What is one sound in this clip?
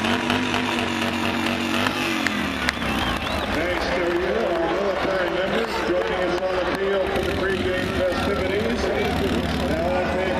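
A small motorbike engine hums as it rides along.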